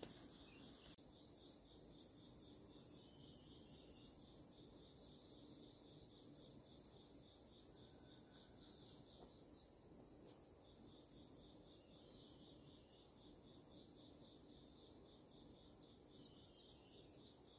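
Plants rustle as a person pulls weeds by hand.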